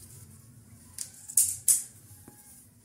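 A plastic ruler is set down and slides on cloth.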